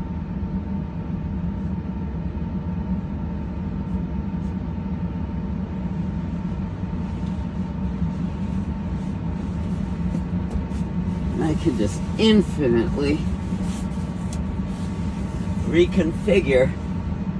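A body thumps softly against seats.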